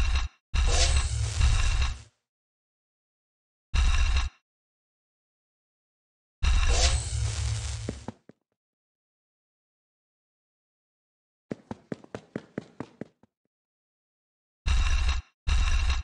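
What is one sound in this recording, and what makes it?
Electric beams zap and crackle in a video game.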